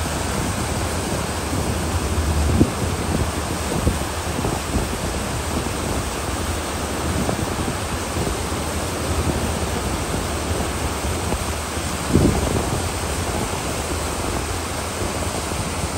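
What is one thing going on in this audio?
A flag flaps in the wind.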